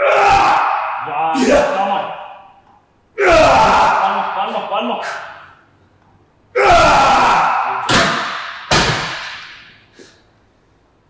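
A man grunts and strains loudly in an echoing room.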